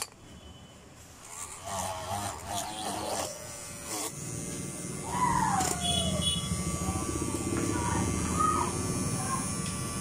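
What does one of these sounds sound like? A small drill bit grinds into a circuit board.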